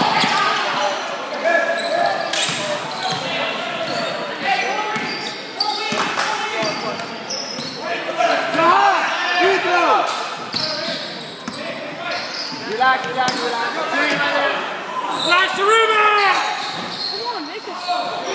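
Sneakers squeak sharply on a hardwood floor in an echoing hall.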